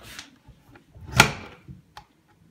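A washing machine door slams shut.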